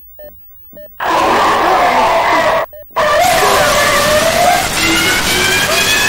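A man talks loudly and excitedly close to a microphone.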